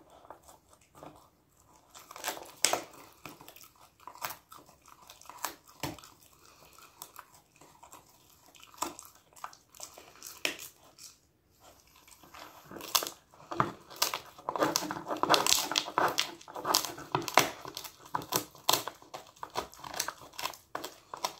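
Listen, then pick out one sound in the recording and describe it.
A dog chews and crunches on a hard chew, close by.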